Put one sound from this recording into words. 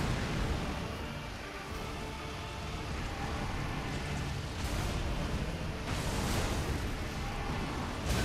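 Heavy weapons clash and thud in a fight.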